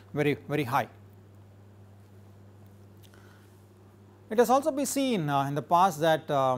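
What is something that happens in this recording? A man lectures calmly into a close microphone, with pauses.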